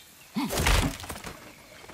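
A heavy blow lands with a loud crash.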